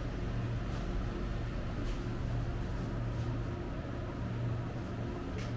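Refrigerated display units hum steadily.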